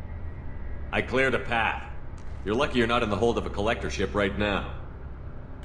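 A man answers calmly and firmly.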